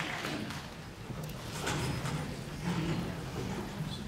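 A band begins to play softly.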